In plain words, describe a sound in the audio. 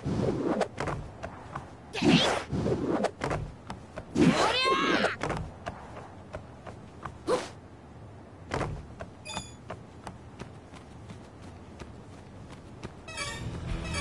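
Footsteps patter quickly on wooden planks and dirt.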